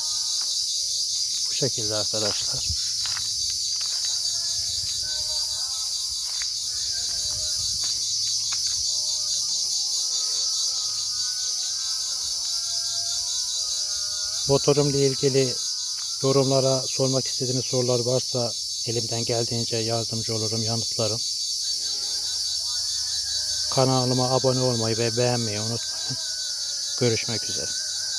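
A quad bike engine idles steadily nearby.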